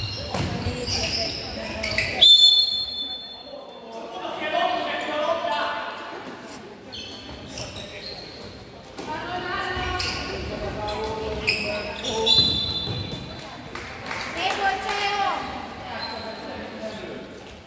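Young women call out to each other in an echoing hall.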